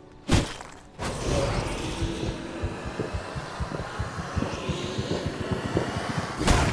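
A creature is drained with a wet, sucking hiss.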